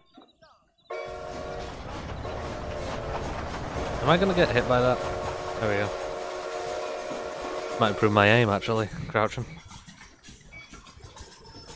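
A steam train rumbles and clatters along its tracks.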